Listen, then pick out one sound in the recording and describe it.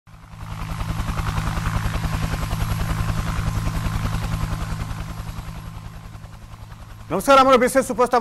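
A helicopter's rotor thumps steadily.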